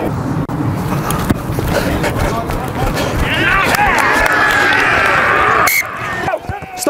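A crowd cheers and claps outdoors.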